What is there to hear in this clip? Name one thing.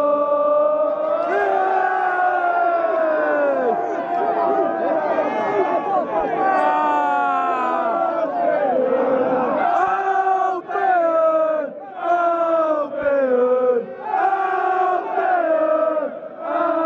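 A large crowd of men sings a chant loudly and together outdoors.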